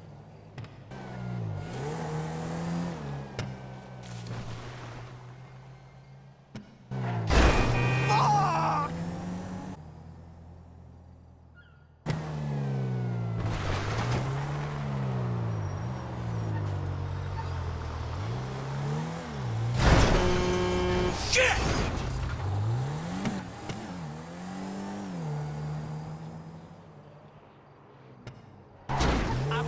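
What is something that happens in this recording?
A car engine revs up and down as it speeds along a road.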